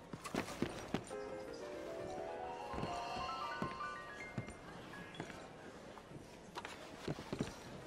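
Boots knock on wooden boards.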